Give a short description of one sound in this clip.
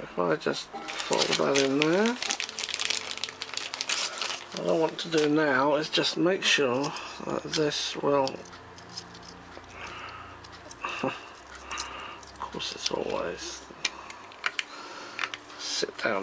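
Small plastic parts click and tap together.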